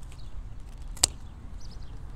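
Pruning shears snip through a thin branch.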